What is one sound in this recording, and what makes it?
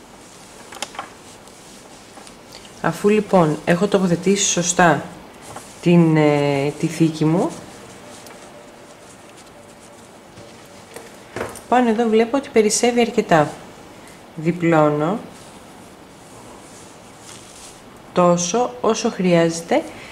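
Cloth rustles softly as hands handle it.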